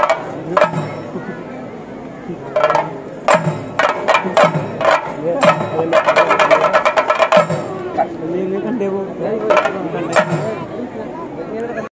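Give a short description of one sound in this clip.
Anklet bells jingle as a dancer stamps.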